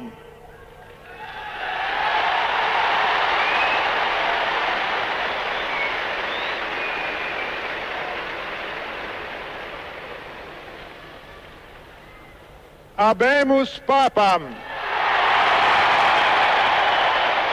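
A huge crowd cheers and roars outdoors.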